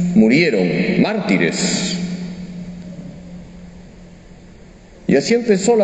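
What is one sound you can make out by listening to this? A man speaks calmly into a microphone, his voice echoing in a large hall.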